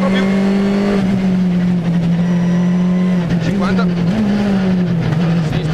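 A rally car engine roars loudly at high revs, shifting pitch through the gears.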